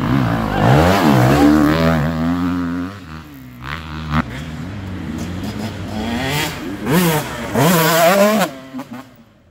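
A dirt bike engine revs hard and shifts through the gears as it rides past.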